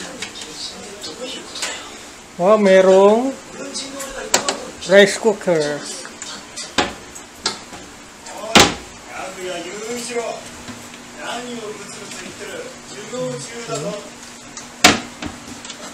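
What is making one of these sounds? Cabinet doors open and shut with soft knocks.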